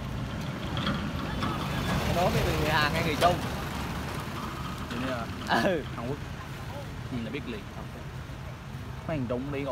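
A truck engine rumbles as the truck drives past.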